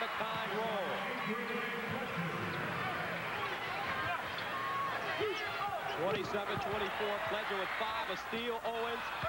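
A large crowd murmurs and cheers in an echoing arena.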